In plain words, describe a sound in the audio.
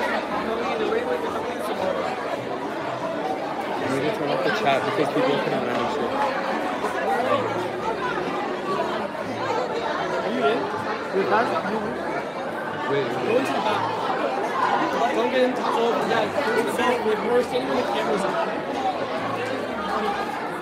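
A crowd of young people chatters loudly in a large echoing hall.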